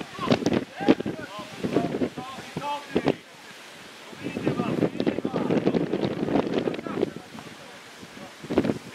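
Young men call and shout to each other across an open outdoor pitch.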